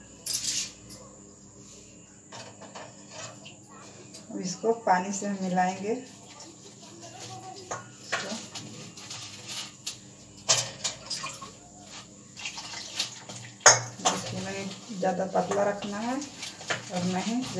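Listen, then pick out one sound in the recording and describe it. Hands mix and knead dough in a metal bowl.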